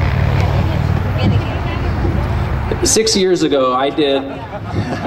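A young man speaks loudly into a microphone through loudspeakers.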